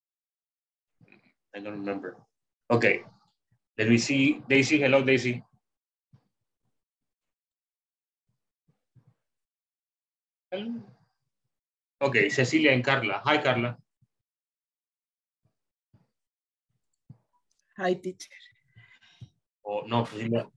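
A man speaks calmly in short bursts over an online call.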